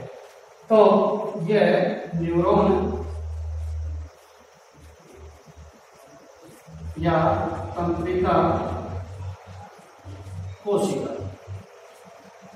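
A man speaks clearly and calmly, as if teaching.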